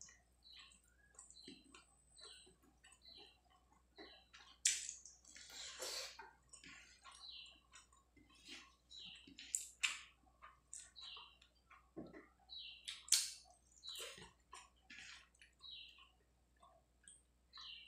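A person chews food wetly and noisily up close.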